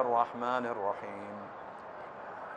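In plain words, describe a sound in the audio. An elderly man chants loudly through a microphone, echoing in a large hall.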